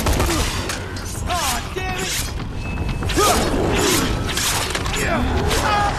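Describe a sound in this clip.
Heavy blows thud against bodies.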